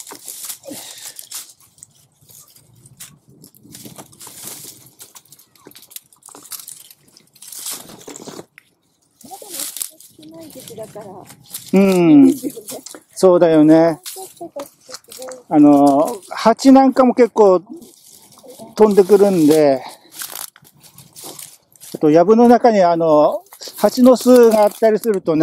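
Dry grass and leaves rustle and crackle as they are pushed aside.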